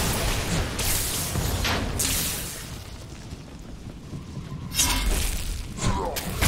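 Monsters are struck with heavy blows and explosions.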